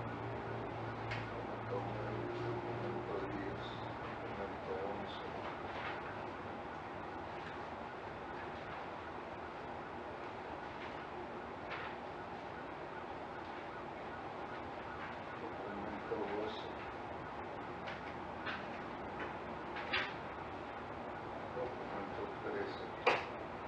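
A man speaks calmly at a distance in a quiet room.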